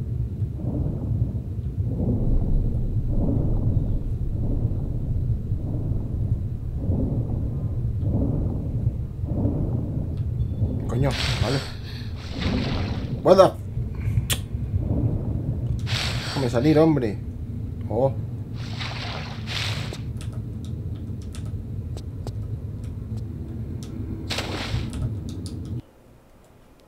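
Water rumbles and gurgles steadily underwater.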